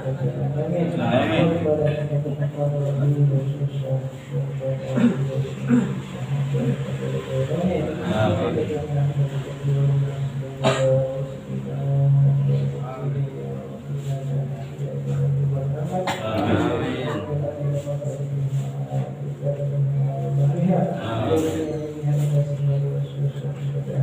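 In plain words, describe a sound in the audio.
Young women sing together, close by.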